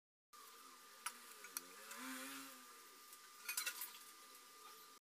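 Raw meat splashes softly into a pot of water.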